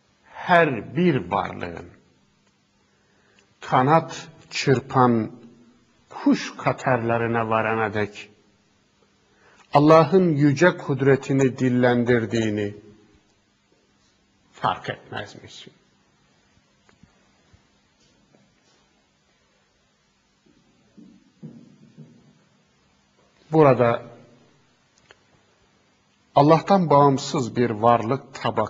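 A middle-aged man speaks calmly and deliberately into a close microphone, with pauses between phrases.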